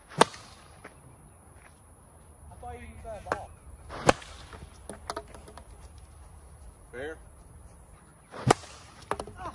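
A plastic bat sharply smacks a plastic ball outdoors.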